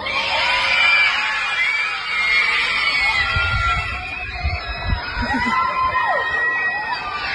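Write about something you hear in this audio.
A crowd shouts and chants outdoors at a distance.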